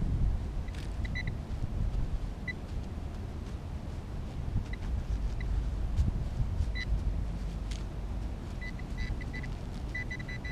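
An electronic probe beeps in short high tones.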